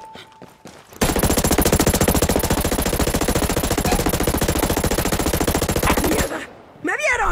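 A rifle fires rapidly in long bursts.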